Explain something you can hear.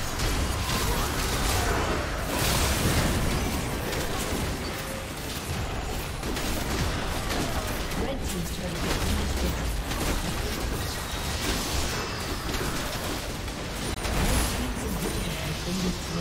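Magic blasts crackle and burst in quick succession.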